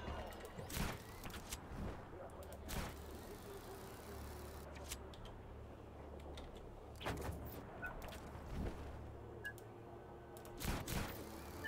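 Wind rushes steadily past during a parachute descent.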